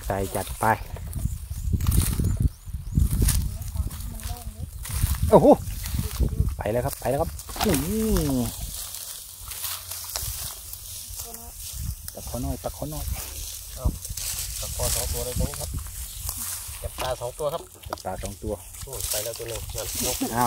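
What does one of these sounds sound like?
Men and women talk casually close by.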